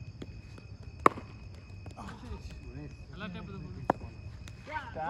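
A cricket ball smacks into a gloved hand with a sharp thud.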